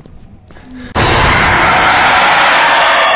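A loud, harsh jump-scare screech blasts out suddenly and holds.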